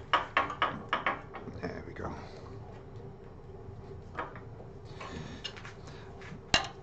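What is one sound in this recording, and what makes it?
Metal parts clink and knock as a tool rest is adjusted.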